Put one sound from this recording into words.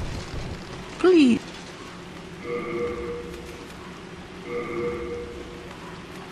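Short chimes sound as a menu is opened and items are selected.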